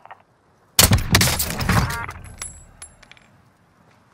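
A sniper rifle fires a loud shot that echoes away.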